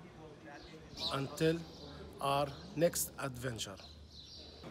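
A man speaks close to the microphone, calmly explaining.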